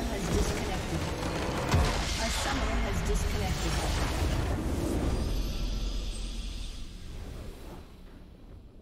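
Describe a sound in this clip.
Magic spells blast and crackle in a loud fight.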